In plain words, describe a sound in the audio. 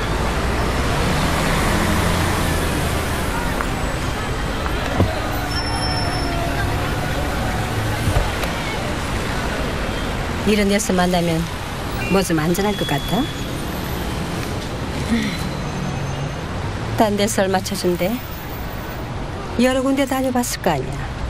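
Traffic hums steadily along a busy street.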